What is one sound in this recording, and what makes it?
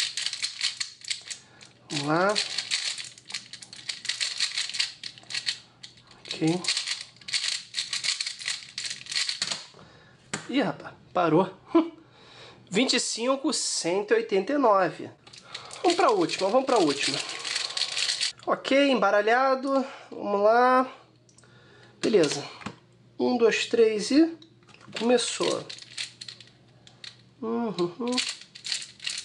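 A plastic puzzle cube clicks and clatters rapidly as it is twisted.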